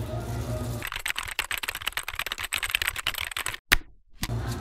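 Plastic gloves rustle and crinkle as hands rub together.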